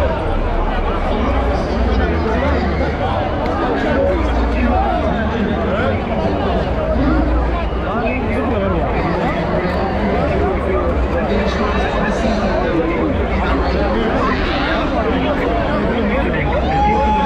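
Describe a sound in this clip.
A large crowd chatters loudly all around, outdoors.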